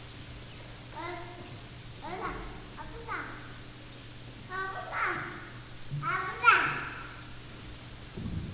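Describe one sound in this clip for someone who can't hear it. A man speaks slowly and solemnly through a microphone in a large echoing hall.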